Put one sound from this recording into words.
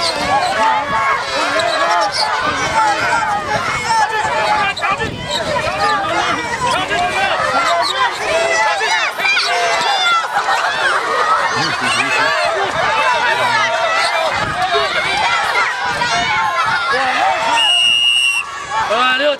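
A crowd of children shout and cheer loudly outdoors.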